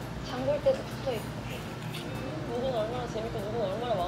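A woman gulps water from a bottle.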